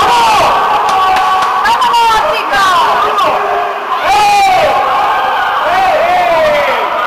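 Young men shout to each other across the water.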